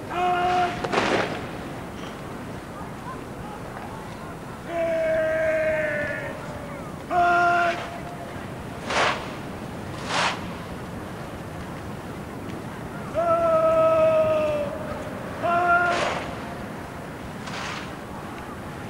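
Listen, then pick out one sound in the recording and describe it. Rifles slap and click sharply in unison.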